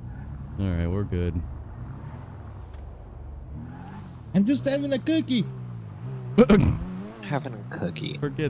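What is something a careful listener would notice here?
A sports car engine hums and revs.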